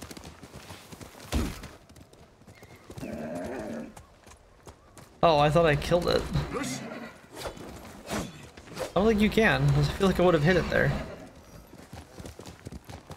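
A horse's hooves thud on snowy ground.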